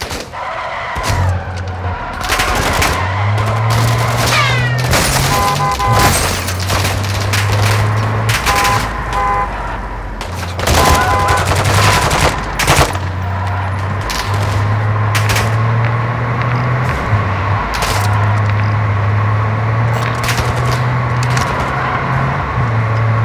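A car engine starts and revs, roaring steadily as the car drives.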